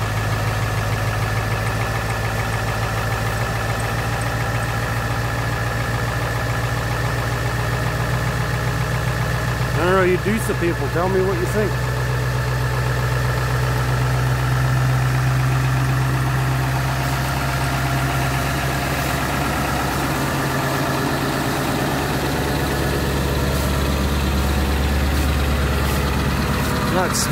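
A van engine idles with a steady low rumble.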